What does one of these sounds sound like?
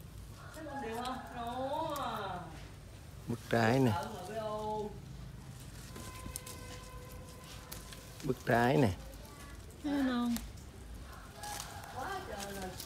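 Leaves rustle softly as a hand pushes through a plant's branches.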